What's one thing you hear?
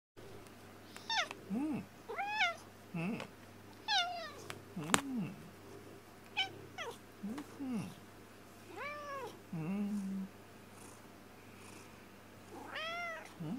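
A cat meows and trills repeatedly up close.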